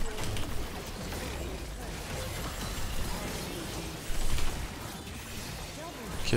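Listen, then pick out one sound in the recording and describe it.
Game spells blast and crackle in quick bursts.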